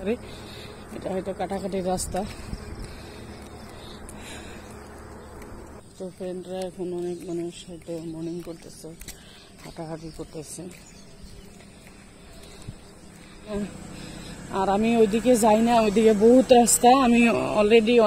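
A young woman talks calmly, close to the microphone.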